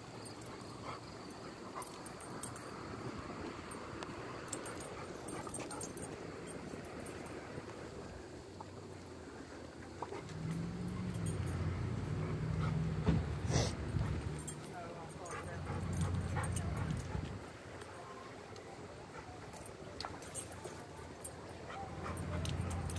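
A dog's claws tap and scrape on pavement as it walks.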